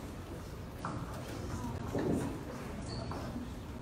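A woman speaks into a microphone over a loudspeaker.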